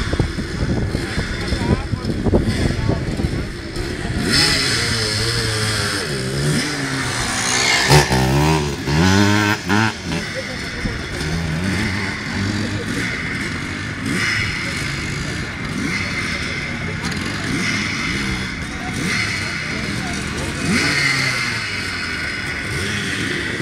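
Dirt bike engines rev and roar, rising and falling in pitch.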